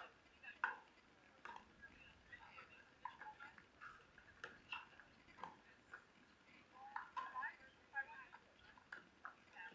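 Paddles hit a plastic ball back and forth with sharp hollow pops.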